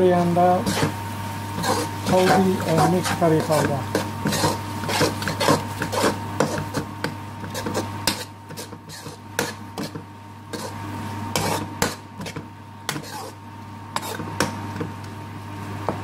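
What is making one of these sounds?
A metal spoon scrapes and clatters against a frying pan.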